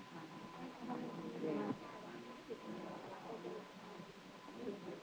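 A crowd of men and women chat and murmur.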